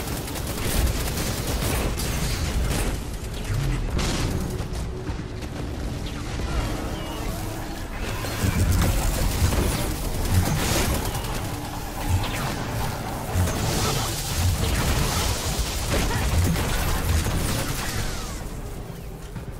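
Gunfire bursts rapidly in heavy bursts.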